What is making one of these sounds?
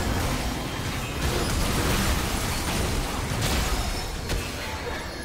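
Game spells burst and crackle in a fast fight.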